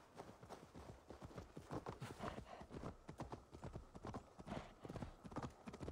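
Hooves clop on a gravel path.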